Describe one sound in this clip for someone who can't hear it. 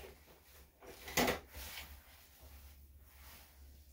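A small dog shakes its head, ears flapping.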